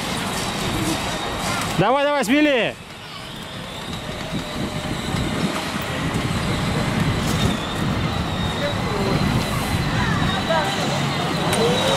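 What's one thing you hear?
A small electric motor of a child's ride-on car whirs softly.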